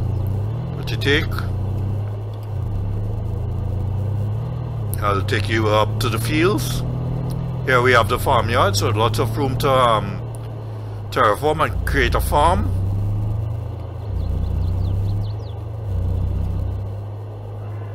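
A pickup truck engine hums steadily as it drives along.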